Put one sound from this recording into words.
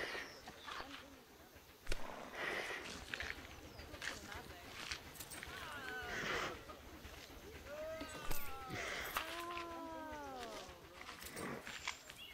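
A giraffe tugs at leaves, rustling them.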